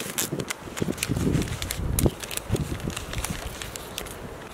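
A paper packet rustles and crinkles in someone's hands.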